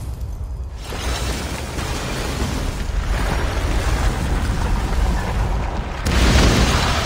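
A stone tower collapses with a deep roaring rumble.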